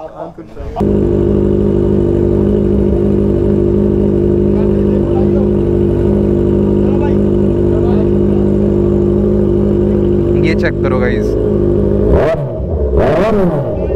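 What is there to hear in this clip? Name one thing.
A motorcycle engine idles loudly with a steady rumble.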